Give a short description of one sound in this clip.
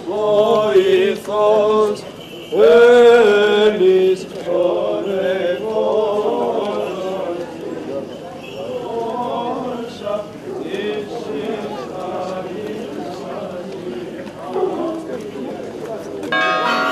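A group of men chant together in unison outdoors.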